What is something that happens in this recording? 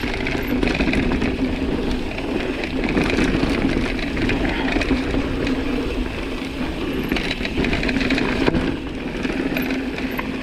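Wind rumbles past a moving rider.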